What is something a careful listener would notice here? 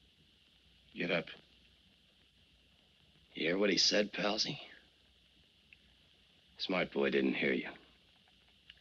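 A man speaks in a low, calm voice, in short phrases with pauses.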